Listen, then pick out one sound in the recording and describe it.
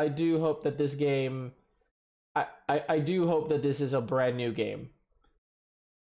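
A man speaks calmly and close into a microphone.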